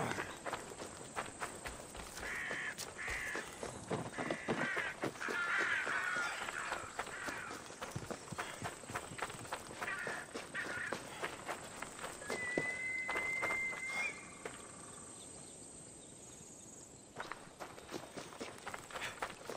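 Footsteps crunch on dirt and gravel as a man runs.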